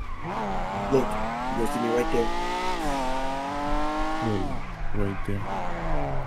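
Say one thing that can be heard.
A car engine revs hard, rising and falling in pitch.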